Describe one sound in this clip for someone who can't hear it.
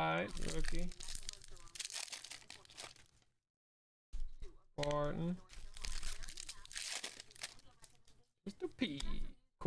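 A foil card wrapper crinkles as it is torn open.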